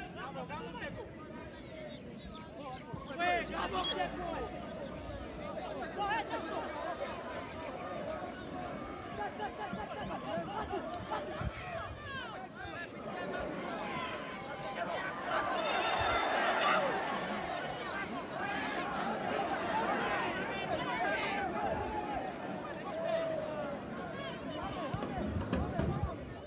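Football players shout and call to each other outdoors, from a distance.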